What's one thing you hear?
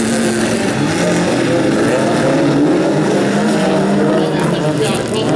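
Several race car engines roar and rev loudly close by.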